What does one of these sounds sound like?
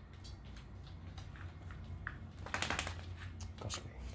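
A dog's claws patter on a soft floor.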